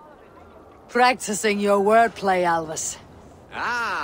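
A woman speaks with amusement, heard close.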